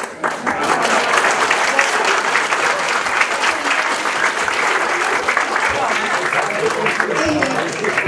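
Children clap their hands together.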